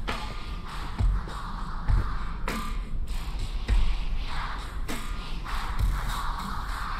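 Footsteps thud softly.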